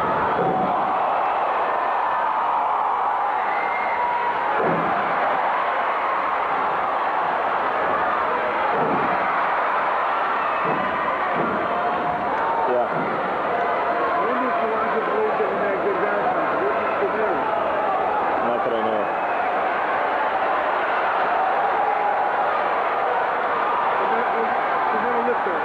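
A large arena crowd cheers and shouts in an echoing hall.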